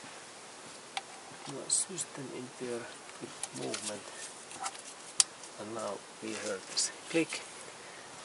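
A hose fitting scrapes and taps as it is screwed into place.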